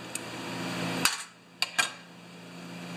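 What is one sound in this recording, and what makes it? Small metal parts click as they are pulled apart.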